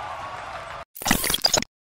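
A glitchy electronic burst sounds loudly.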